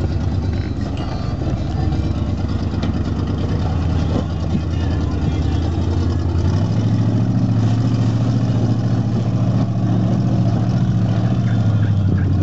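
Tyres crunch and grind over loose rock.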